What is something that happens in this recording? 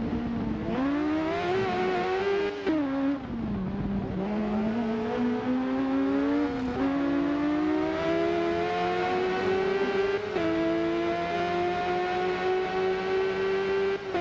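A motorcycle engine revs high, rising in pitch and dropping sharply as gears shift.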